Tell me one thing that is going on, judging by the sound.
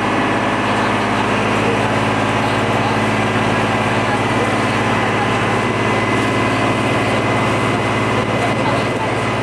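Water splashes and washes against a boat's hull.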